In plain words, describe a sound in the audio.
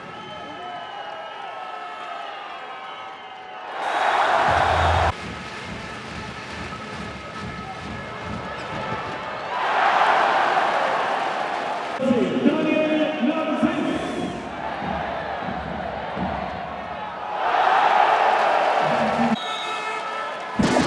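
A large crowd cheers and roars in loud bursts in an echoing hall.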